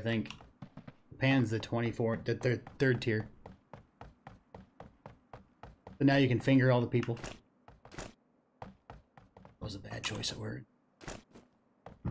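Footsteps run quickly across a wooden floor.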